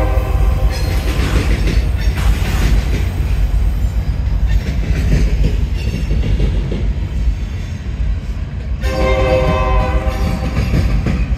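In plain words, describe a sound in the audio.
A freight train rumbles past close by, its wheels clattering on the rails.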